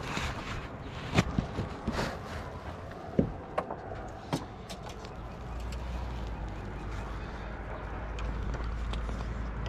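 A long metal rod taps and scrapes against a car door.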